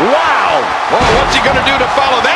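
A body lands on a wrestling mat with a thud.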